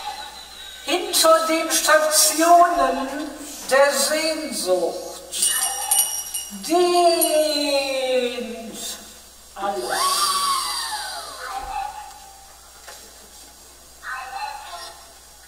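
A woman sings expressively into a microphone, with long gliding notes.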